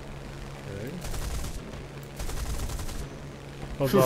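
Aircraft cannons and machine guns fire in bursts.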